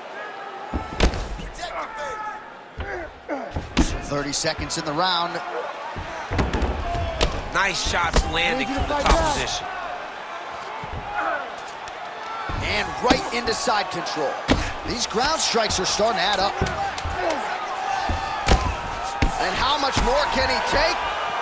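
Punches thud heavily against a body.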